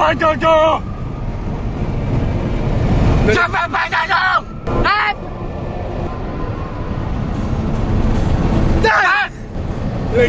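A car engine hums steadily with road noise.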